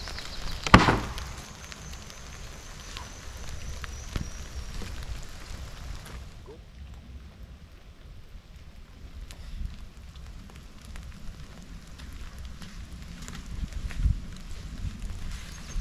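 Footsteps crunch on forest ground.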